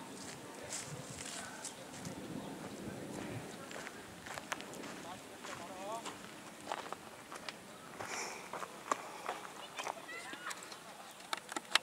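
A heavy roller rumbles slowly across the grass.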